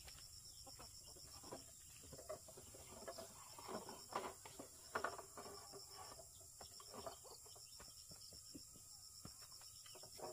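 A wooden gate knocks and scrapes as it is dragged aside.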